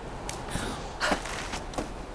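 A hand grabs a rope with a sharp thump.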